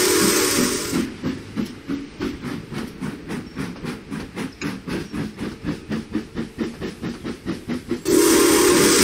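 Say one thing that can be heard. A steam locomotive chuffs in a steady rhythm.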